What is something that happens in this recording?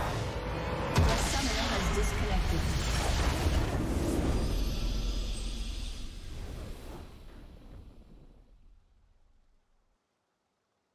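A game's victory fanfare swells and fades.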